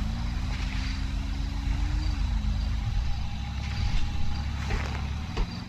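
A motorbike engine rumbles and revs.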